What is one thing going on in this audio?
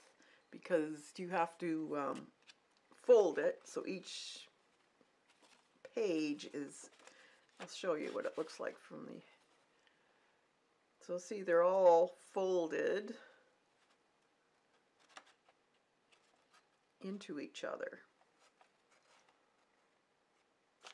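Stiff paper pages rustle softly as they are folded and fanned open.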